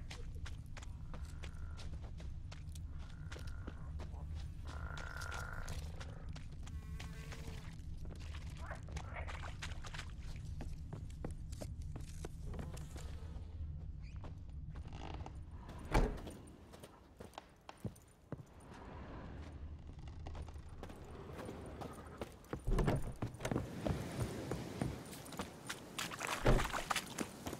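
Footsteps thud and rustle through grass and over wooden boards.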